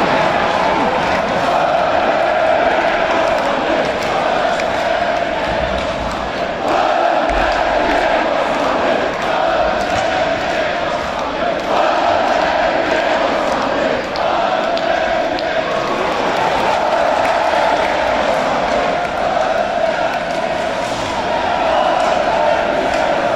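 A large crowd chants and cheers loudly in a big echoing arena.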